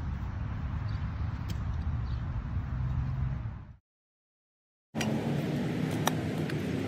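A shovel chops and scrapes into soil.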